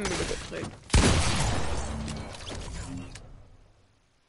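A loud burst crackles as an energy blast hits.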